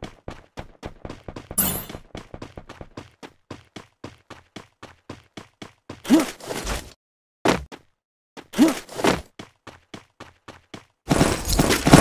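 Quick footsteps of a running video game character thud.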